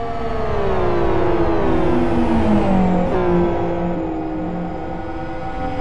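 Racing car engines roar and shift gears as cars speed along a track.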